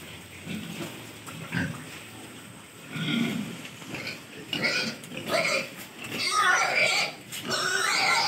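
Pigs grunt and squeal close by.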